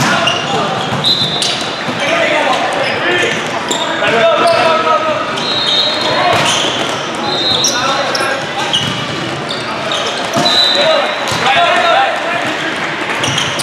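Shoes squeak sharply on a hard court floor in a large echoing hall.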